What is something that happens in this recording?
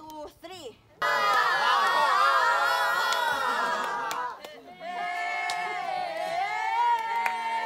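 A group of young people sings together loudly.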